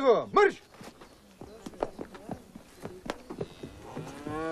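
Footsteps run across the ground.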